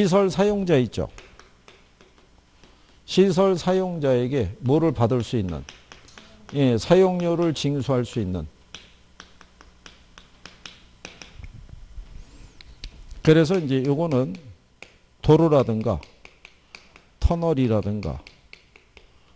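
A middle-aged man lectures into a microphone, speaking calmly with pauses.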